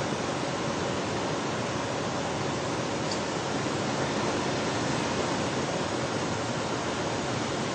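Tyres squeal on pavement.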